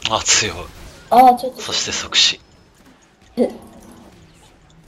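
Game spells burst and clash in quick, sharp bursts.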